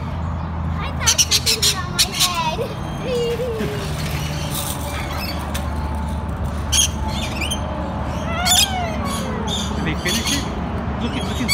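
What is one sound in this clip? A parrot squawks shrilly in short bursts.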